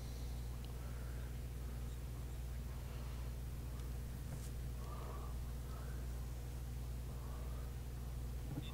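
A man murmurs quietly into a close microphone.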